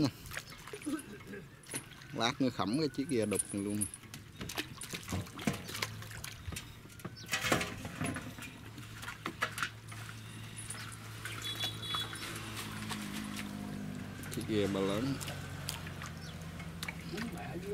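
Water splashes as a net is hauled.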